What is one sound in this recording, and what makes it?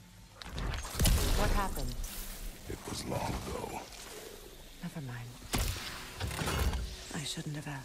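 A heavy axe swings and strikes with loud thuds.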